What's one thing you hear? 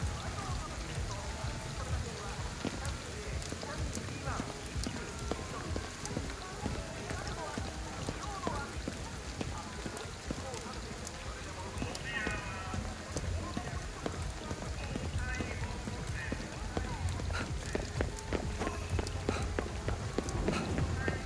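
Heavy rain pours steadily onto a wet street.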